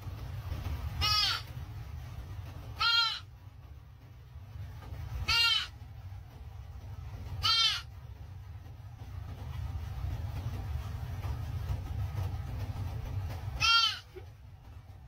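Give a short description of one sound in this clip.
A fawn bleats in short, high, wavering cries.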